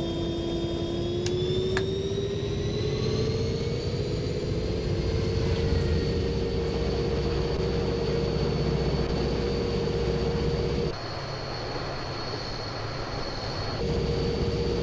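A diesel locomotive engine drones and slowly rises in pitch.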